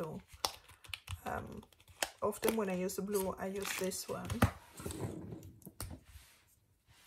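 Hands crinkle a plastic pack of markers.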